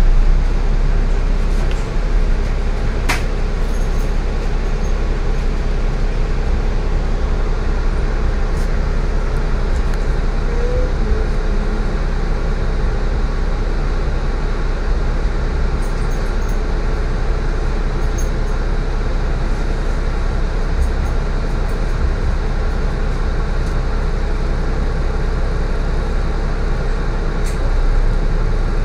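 A bus engine idles with a steady low rumble, heard from inside.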